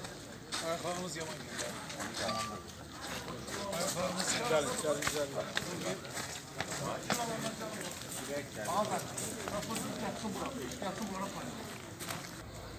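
A crowd of men and women murmurs and talks outdoors.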